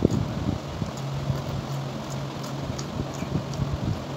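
A young woman chews food with her mouth close to the microphone.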